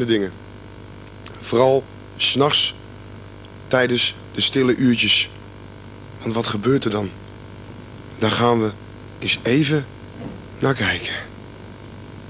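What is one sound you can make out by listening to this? A young man speaks calmly into a microphone, close by.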